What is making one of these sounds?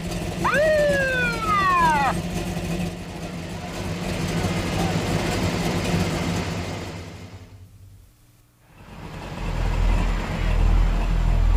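A car engine roars as a car speeds along a road.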